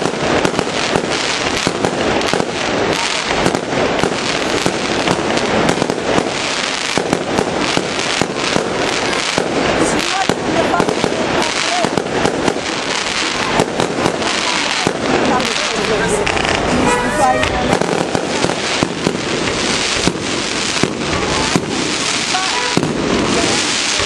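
Fireworks crackle and pop rapidly and without a break.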